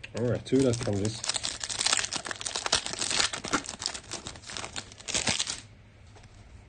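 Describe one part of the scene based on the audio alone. A foil card pack crinkles and tears open.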